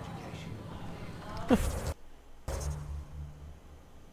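A soft electronic tone sounds as a game menu opens.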